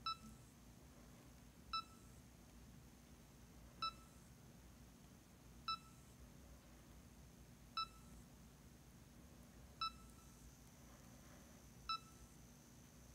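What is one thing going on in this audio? A small electronic device beeps briefly at regular intervals.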